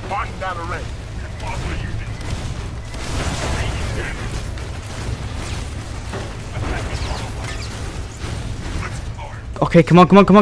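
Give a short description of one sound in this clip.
Gunfire and explosions rumble from a game.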